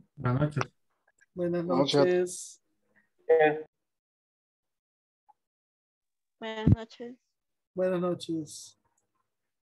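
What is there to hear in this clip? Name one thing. A man speaks in short phrases over an online call, with pauses between.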